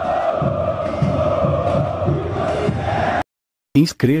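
A huge crowd sings and chants loudly outdoors.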